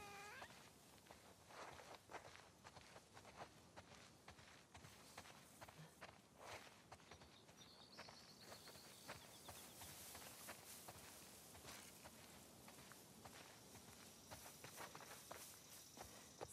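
Footsteps crunch and rustle through dry grass and dirt.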